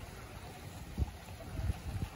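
Water trickles softly in a small fountain.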